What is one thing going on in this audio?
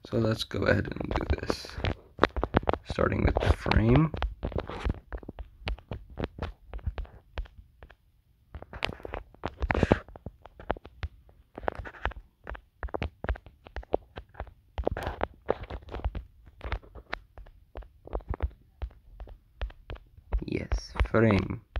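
Blocks are placed with quick soft thuds, one after another.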